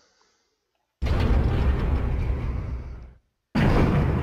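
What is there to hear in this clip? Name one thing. Metal elevator doors slide shut with a rumble.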